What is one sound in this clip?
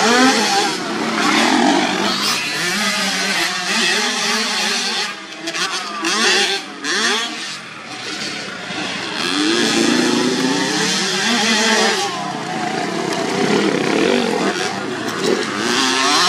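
Small dirt bike engines rev and whine up and down close by.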